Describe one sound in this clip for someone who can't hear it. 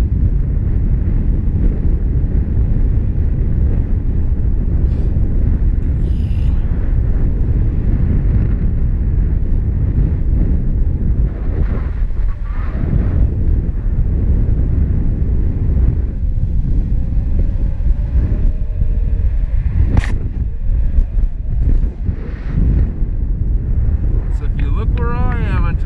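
Strong wind rushes and buffets loudly throughout.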